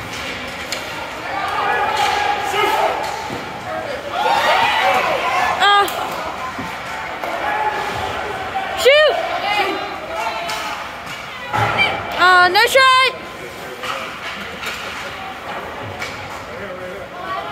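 Spectators shout and cheer around a large echoing rink.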